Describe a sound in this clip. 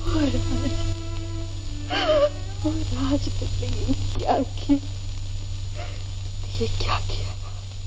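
A young woman sobs.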